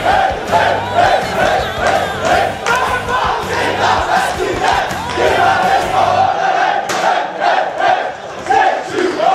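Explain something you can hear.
A crowd of men clap their hands in rhythm.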